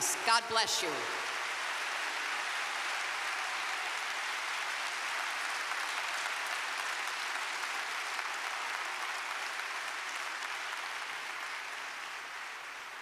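A large crowd applauds steadily and slowly fades.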